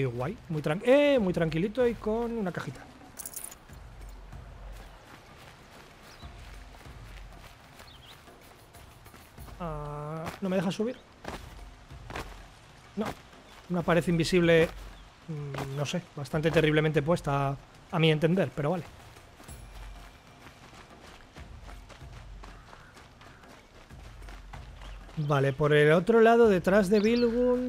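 Footsteps run across stone paving.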